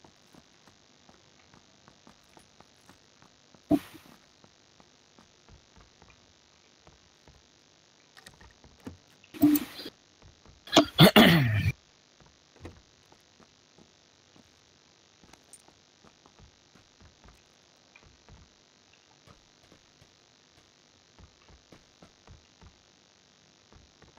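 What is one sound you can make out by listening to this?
Footsteps thud quickly across wooden floors and stairs.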